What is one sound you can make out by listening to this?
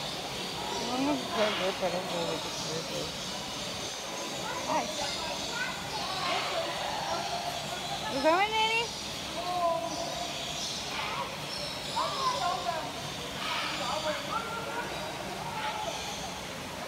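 Young children chatter and call out nearby.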